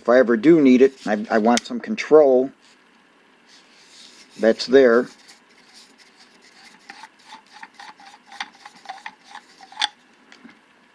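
A plastic handle clicks and creaks as it is screwed into a metal tool.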